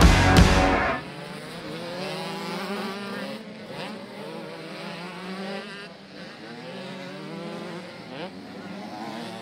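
Motorcycle engines rev and whine, rising and falling in pitch as dirt bikes race past.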